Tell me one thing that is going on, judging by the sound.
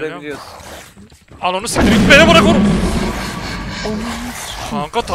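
A young man speaks and shouts in fright close to a microphone.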